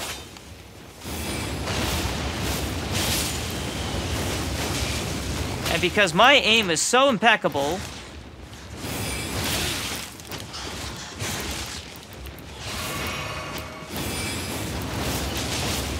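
Flames roar and crackle as a dragon breathes fire.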